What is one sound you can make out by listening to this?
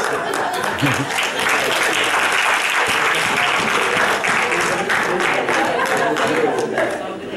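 Audience members clap their hands.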